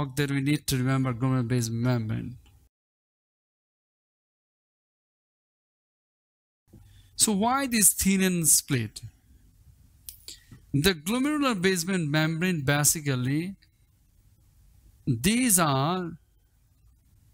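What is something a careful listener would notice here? A man speaks calmly and clearly, as if explaining a lesson.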